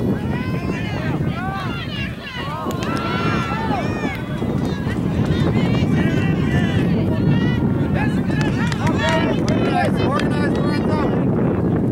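Spectators call out and cheer from across an open field.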